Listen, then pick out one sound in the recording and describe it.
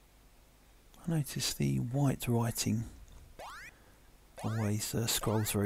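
Chirpy electronic arcade game music plays in short, bouncy phrases.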